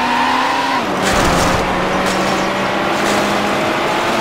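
A car crashes through bushes with a rustling crunch.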